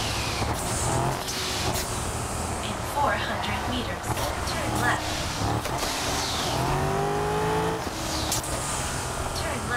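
A sports car engine roars steadily at speed.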